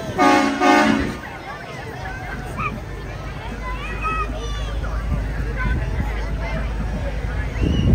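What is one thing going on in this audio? Jeep engines rumble as the vehicles roll slowly past.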